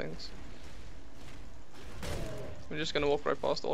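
Magic blasts and clashing weapons crackle in a fast game battle.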